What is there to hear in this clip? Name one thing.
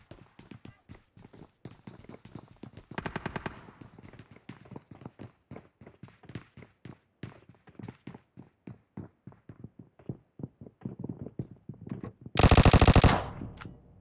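Footsteps tread in quick succession.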